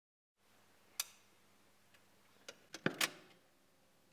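Switches on a tape machine click and clack.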